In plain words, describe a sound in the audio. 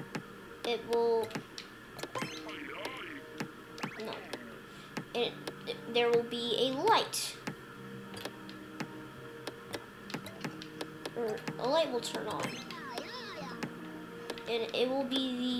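A young child talks with animation close to a microphone.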